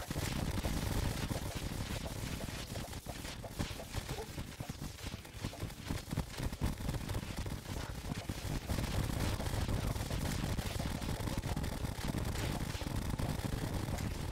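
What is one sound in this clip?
Game weapons fire in rapid bursts of zapping shots.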